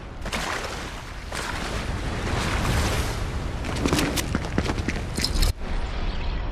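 Water rushes and splashes over a waterfall.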